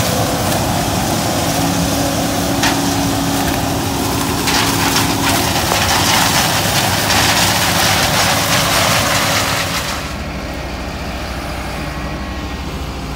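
A combine harvester engine rumbles steadily nearby.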